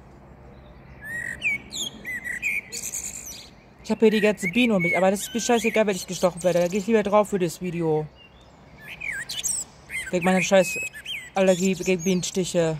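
A bird chirps.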